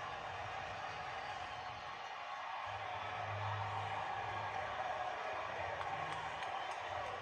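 A stadium crowd roars and cheers, heard through a television speaker.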